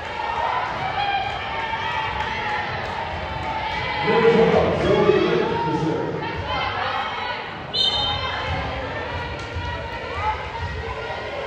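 Players call out to each other loudly.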